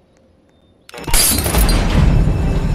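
A game alarm sounds loudly.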